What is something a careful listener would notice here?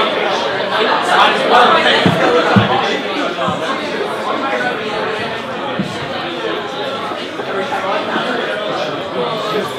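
A young man beatboxes loudly into a microphone, heard through loudspeakers.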